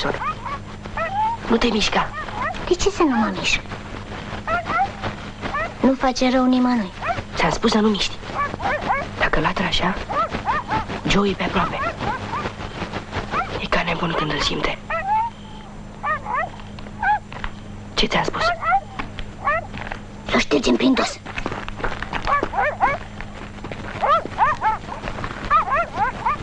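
A second boy answers quietly and anxiously.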